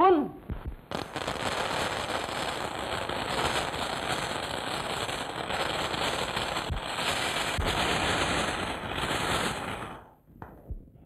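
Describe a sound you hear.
A shower of coins pours down and jingles onto a floor.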